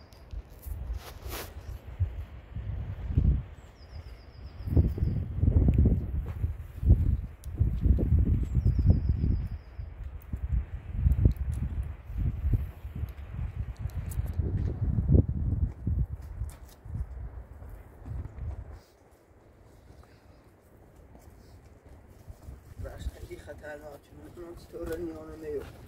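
Footsteps scrape and crunch on rock and loose stones.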